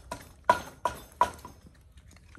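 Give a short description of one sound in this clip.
Scallop shells clink on a metal grill.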